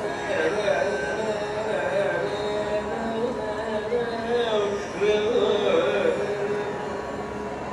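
A man sings through a microphone with gliding, ornamented phrases.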